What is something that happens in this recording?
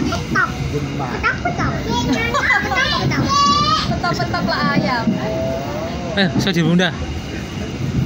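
A young woman laughs and talks close by.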